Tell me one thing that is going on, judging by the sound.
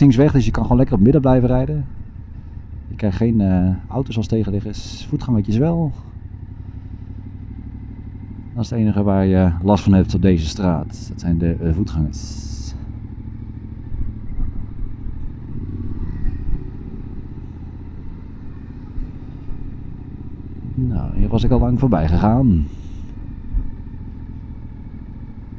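A motorcycle engine rumbles steadily up close.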